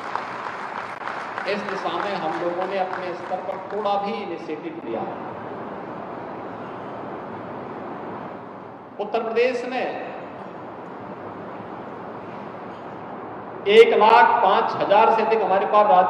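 A middle-aged man speaks into a microphone over loudspeakers, in a calm, measured voice, with pauses.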